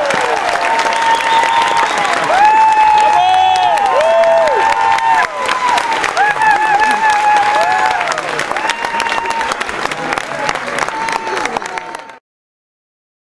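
A crowd claps along in an echoing hall.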